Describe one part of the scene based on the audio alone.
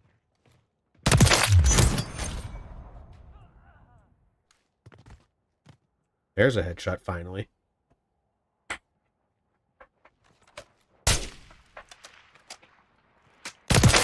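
A rifle shot rings out and echoes away.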